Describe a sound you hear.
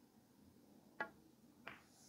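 A cue strikes a billiard ball.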